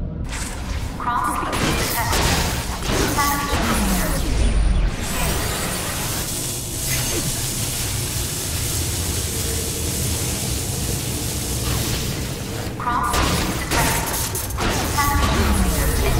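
A metal object smashes and clatters apart.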